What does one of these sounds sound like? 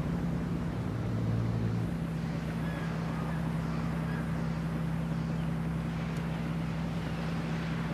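Tyres crunch over sand.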